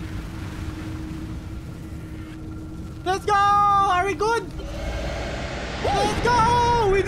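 An explosion roars with a deep rumble.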